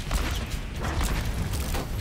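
An energy beam buzzes loudly.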